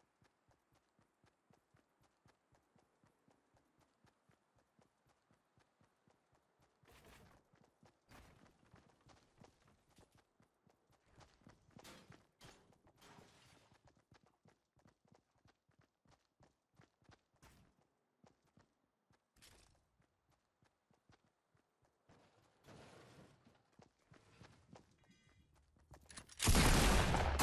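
Quick footsteps patter steadily across the ground.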